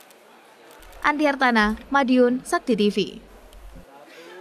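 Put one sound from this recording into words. A woman speaks through a loudspeaker.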